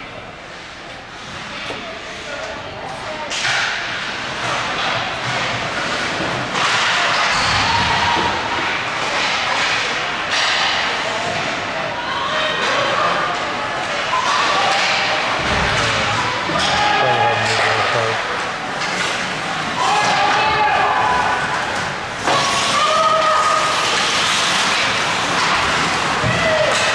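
Skates scrape and hiss on ice in a large echoing rink.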